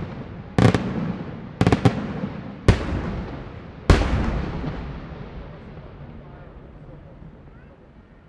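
Fireworks crackle and fizzle as sparks fall.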